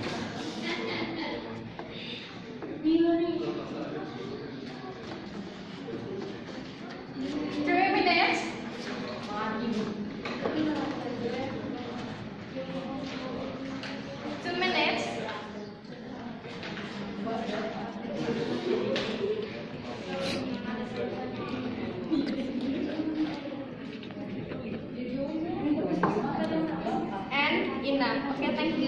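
Several young women chatter and laugh close by.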